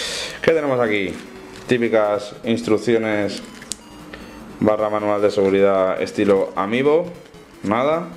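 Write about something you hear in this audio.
Paper rustles as a folded leaflet is unfolded.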